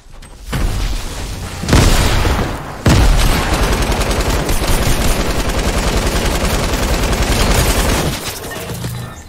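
Rapid gunfire rattles loudly and continuously.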